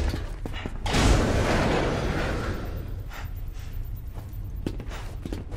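A heavy metal door slides open with a loud mechanical rumble.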